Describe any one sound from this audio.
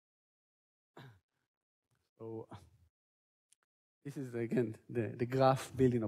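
A man lectures through a microphone, speaking with pauses.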